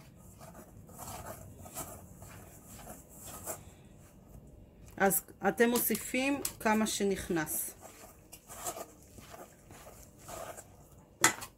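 Hands rub and squeeze flour in a metal bowl.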